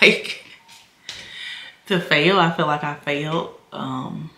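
A woman laughs close by.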